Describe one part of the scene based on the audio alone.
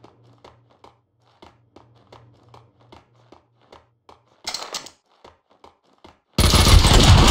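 Footsteps tap quickly on hard steps.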